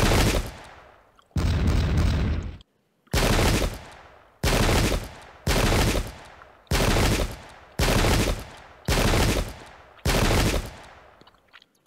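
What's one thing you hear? Musket volleys fire in loud, evenly spaced bursts.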